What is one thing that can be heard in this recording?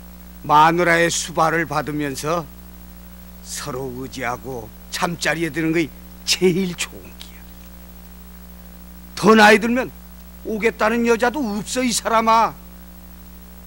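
An older man speaks forcefully and with animation, close by.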